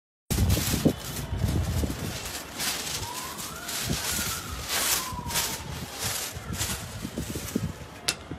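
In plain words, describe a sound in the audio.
Wind gusts and buffets outdoors.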